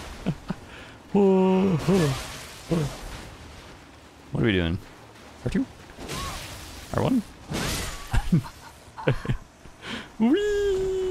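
Lightning crackles and fizzes in bursts.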